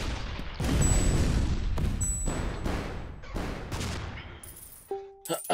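Explosions boom in quick bursts.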